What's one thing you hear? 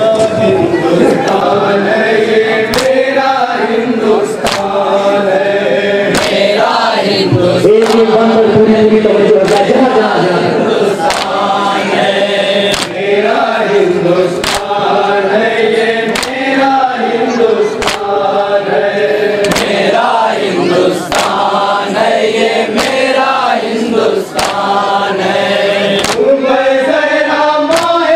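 A young man chants loudly into a microphone, heard through loudspeakers.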